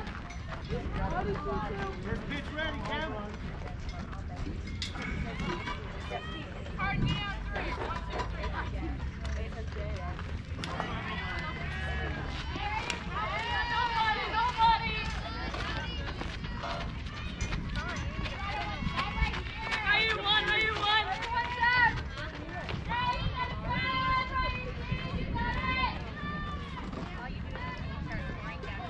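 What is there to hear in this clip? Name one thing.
Young girls shout and chant cheers outdoors.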